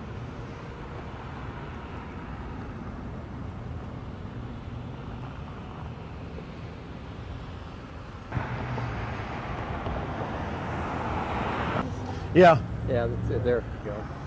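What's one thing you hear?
Car engines idle and rumble in nearby street traffic.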